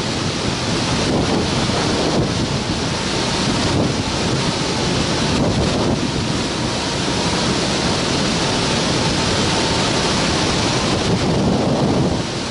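Strong wind roars steadily past the wing of a small aircraft in flight.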